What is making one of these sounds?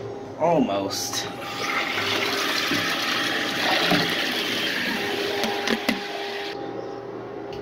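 Water rushes and gurgles in a toilet bowl.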